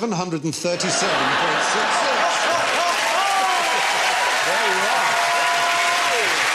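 A large audience laughs.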